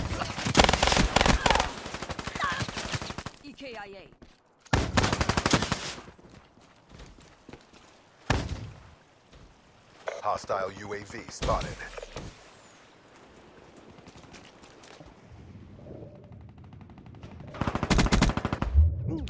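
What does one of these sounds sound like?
Rapid bursts of gunfire ring out close by.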